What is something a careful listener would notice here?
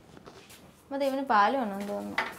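A middle-aged woman speaks nearby.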